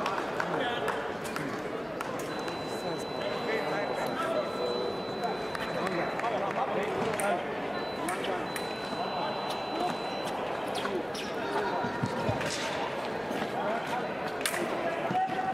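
Voices murmur and echo through a large hall.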